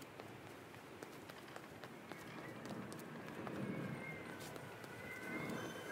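Footsteps crunch steadily on a dirt road.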